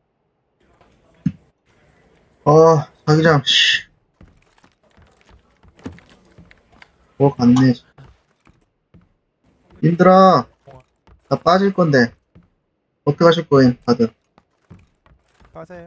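Footsteps creak softly across a wooden floor.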